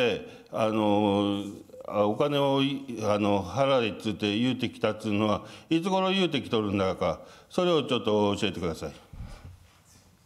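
A man speaks into a microphone in a formal, measured voice, in a large echoing hall.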